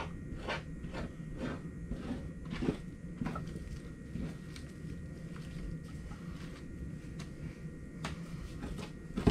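A saw rasps back and forth through meat and bone.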